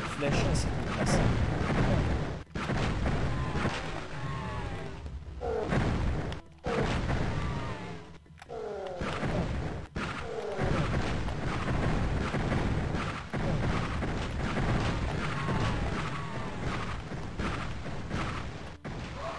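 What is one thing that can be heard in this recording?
A crossbow fires bolts again and again.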